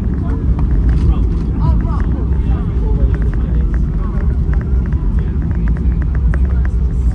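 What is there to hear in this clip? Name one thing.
A jet engine roars steadily with a deep rumble.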